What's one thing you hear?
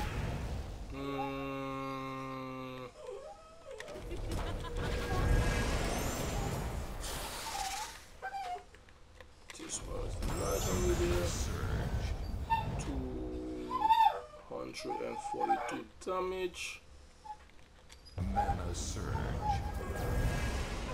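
Short electronic chimes and whooshes from a puzzle game play.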